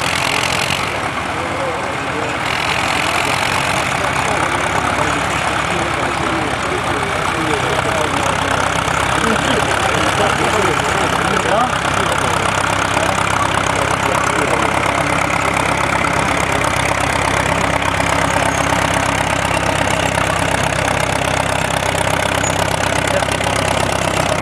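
An old tracked vehicle's engine rumbles and chugs as it climbs a dirt mound.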